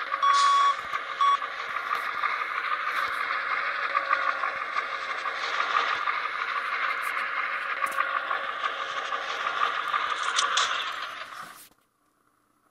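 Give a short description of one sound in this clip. A truck engine idles with a steady hum.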